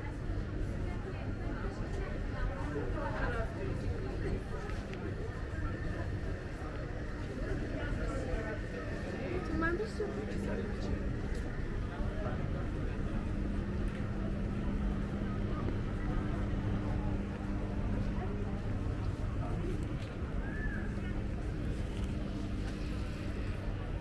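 Footsteps shuffle on a paved walkway.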